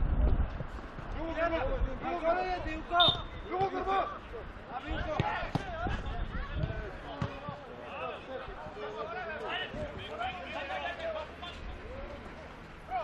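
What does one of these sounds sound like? Young men shout and call out to each other on an outdoor pitch.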